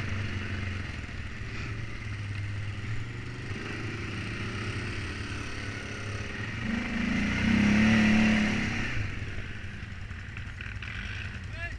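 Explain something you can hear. A quad bike engine hums steadily up close, revving louder for a moment.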